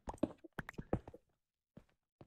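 A pickaxe chips at stone in quick knocks.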